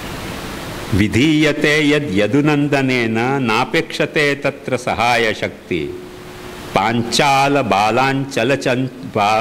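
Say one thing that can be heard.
An elderly man reads aloud in a steady, chanting voice through a microphone.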